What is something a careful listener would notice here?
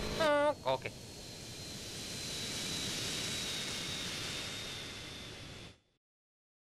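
A jet airliner's engines roar, swell and then fade.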